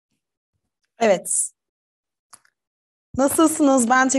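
A young woman speaks with animation into a microphone, heard close up.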